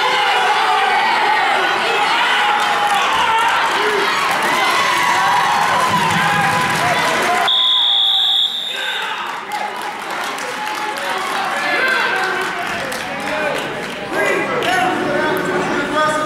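A crowd in a large echoing hall shouts and cheers loudly.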